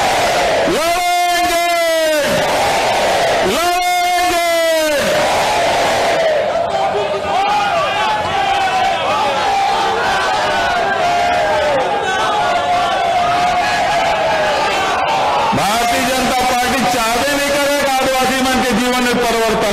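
An older man speaks forcefully through microphones and loudspeakers, with a loud echo outdoors.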